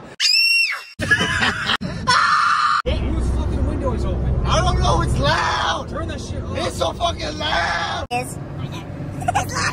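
Several young men talk and laugh loudly in a car.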